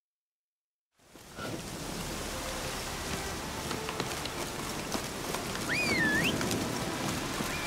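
Footsteps run over a dirt path outdoors.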